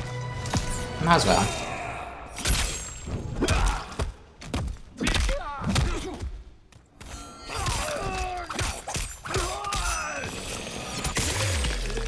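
Heavy punches and blows land with thuds and cracks.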